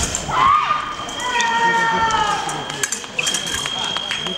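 Fencing blades clash with sharp metallic clicks.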